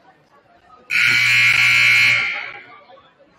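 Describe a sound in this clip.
A loud buzzer sounds for about a second.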